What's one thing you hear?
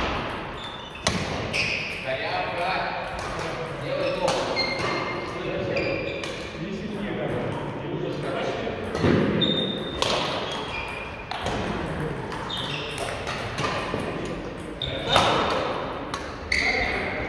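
Sports shoes squeak on the court floor.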